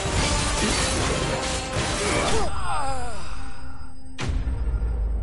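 Magic blasts crackle and burst.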